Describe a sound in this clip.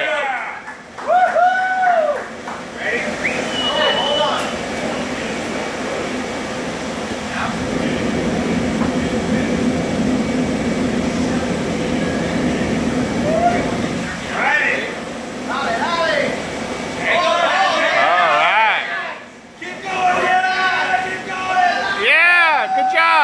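A young woman shrieks and whoops loudly nearby.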